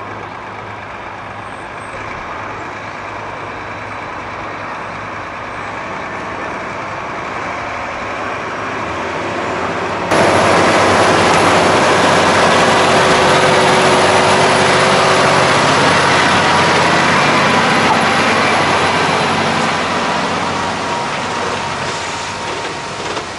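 A heavy truck engine rumbles steadily and grows louder as it slowly approaches and passes close by.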